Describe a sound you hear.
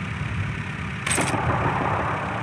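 A machine gun is handled with a metallic clatter.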